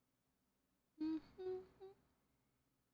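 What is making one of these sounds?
A young woman makes a short sound with her voice close to a microphone.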